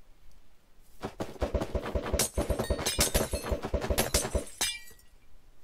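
A glass bottle shatters with a crackling fizz.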